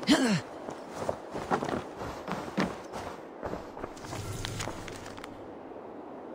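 Footsteps thump and creak on wooden planks and roof tiles.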